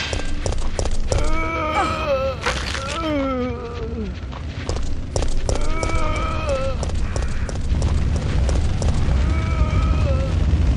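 Zombies moan and groan nearby.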